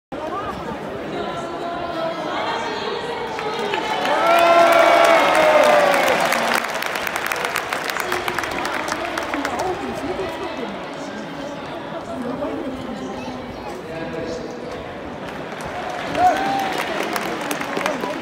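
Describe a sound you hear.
A large stadium crowd murmurs and chatters all around in the open air.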